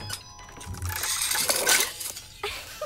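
A jack-in-the-box springs open with a sudden pop.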